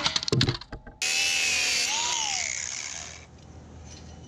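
A cordless power drill whirs loudly and then winds down.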